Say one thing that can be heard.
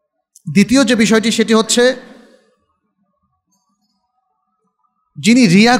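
A man speaks steadily into a microphone.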